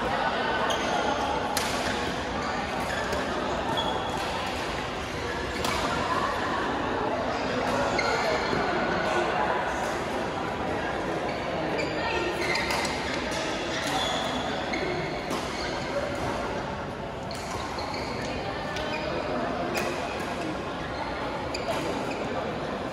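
Shuttlecocks are struck sharply by rackets again and again.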